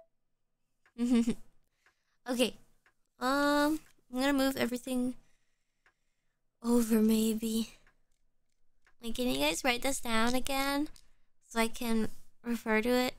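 A young woman speaks with animation into a microphone.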